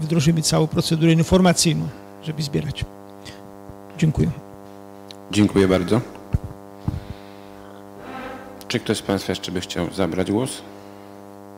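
A man speaks through a microphone in an echoing room.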